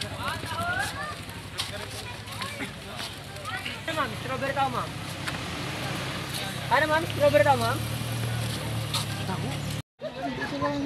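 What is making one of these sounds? An elderly woman talks cheerfully close to the microphone.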